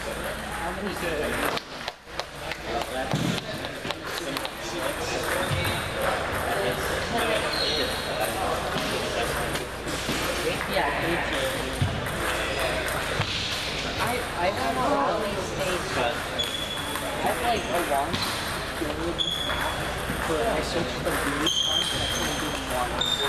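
Ping-pong balls click back and forth on tables and paddles in a large echoing hall.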